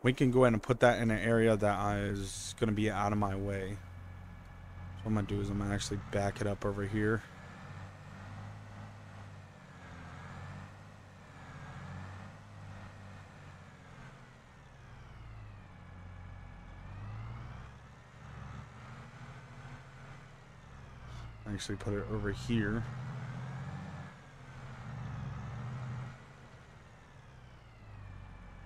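A tractor engine hums steadily at low revs.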